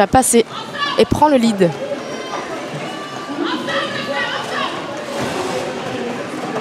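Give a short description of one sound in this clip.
Roller skate wheels rumble and scrape across a hard floor in a large echoing hall.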